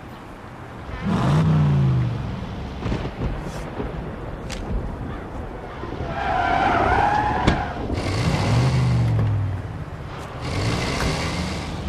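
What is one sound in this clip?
A car engine revs up in bursts and idles.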